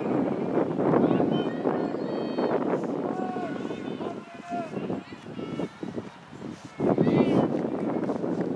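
Players shout to each other in the distance across an open field.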